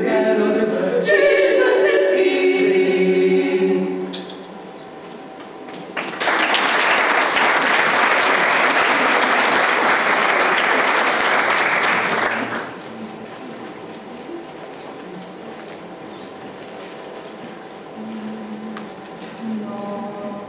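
A choir of women sings together in a large hall.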